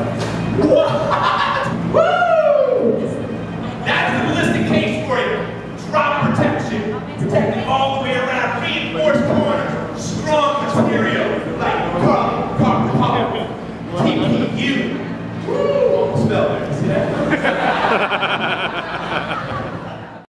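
A man talks with animation into a microphone, heard over loudspeakers in an echoing hall.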